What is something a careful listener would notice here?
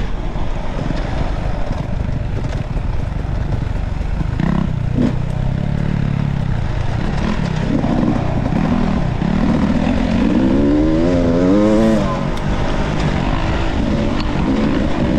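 A dirt bike engine revs up and down close by, rising sharply before easing off.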